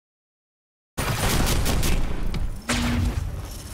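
A loud explosion bursts and roars nearby.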